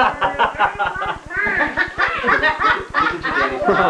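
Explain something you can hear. An elderly woman laughs in the background.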